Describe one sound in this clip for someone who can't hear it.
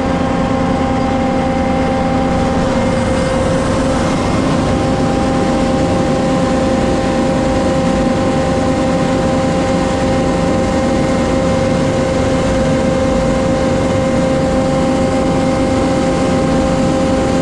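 A hose hisses and rumbles as it feeds into a manhole.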